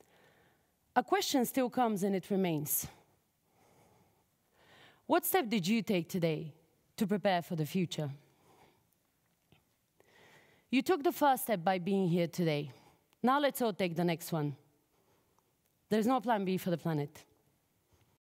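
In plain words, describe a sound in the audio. A young woman speaks calmly and clearly through a microphone.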